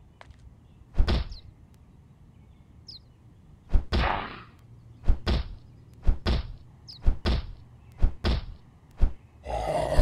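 A wooden bat strikes a body with repeated heavy thuds.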